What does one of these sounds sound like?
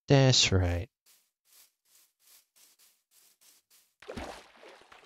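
Soft footsteps tap on grass.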